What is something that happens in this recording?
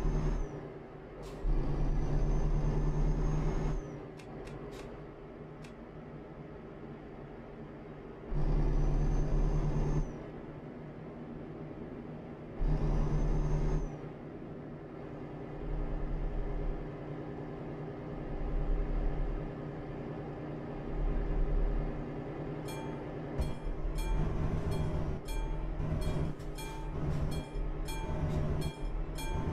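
A truck engine hums steadily and rises in loud bursts.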